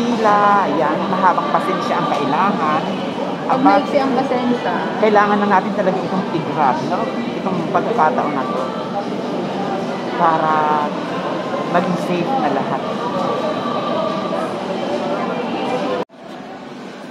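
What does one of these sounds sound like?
A woman talks close by with animation.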